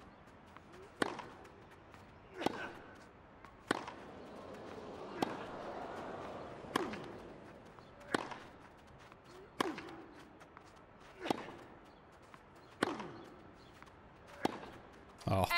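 A tennis ball is struck back and forth with sharp pops of a racket.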